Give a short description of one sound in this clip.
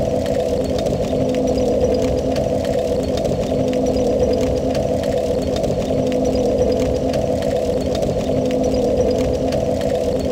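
A fire crackles and roars steadily.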